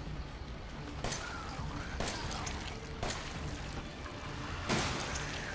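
Gunshots ring out several times.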